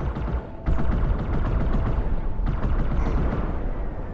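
A plasma rifle fires rapid zapping shots.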